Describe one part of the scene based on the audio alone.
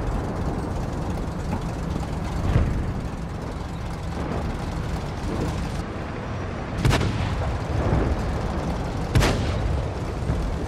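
A heavy tank engine rumbles low and steady.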